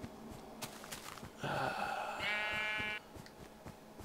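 A sheep bleats nearby.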